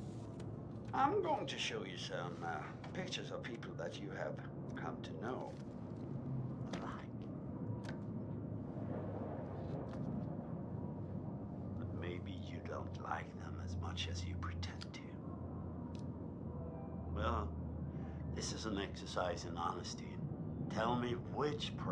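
A middle-aged man speaks slowly and calmly, close by.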